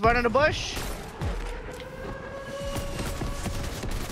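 Gunshots pop in a video game.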